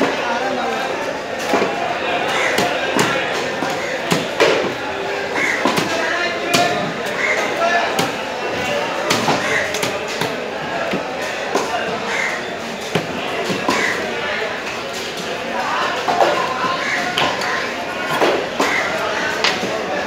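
A busy crowd chatters in a large, echoing hall.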